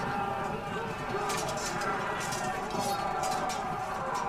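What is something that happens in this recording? Battle sounds of troops clashing and shouting rise in a distance.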